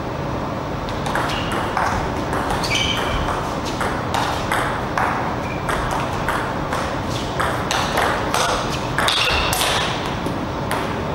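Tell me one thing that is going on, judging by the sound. A table tennis ball clicks quickly back and forth off paddles and a table.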